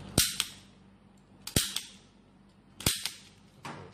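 A plastic part clicks sharply as it is snapped into place.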